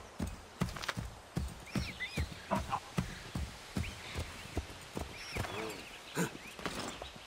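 Horse hooves thud on soft ground at a steady trot.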